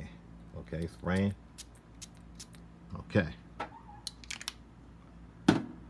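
A perfume atomizer sprays in short hissing bursts.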